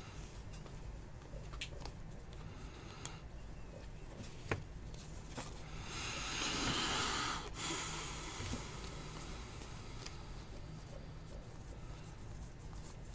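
Trading cards rustle and click as hands shuffle through them.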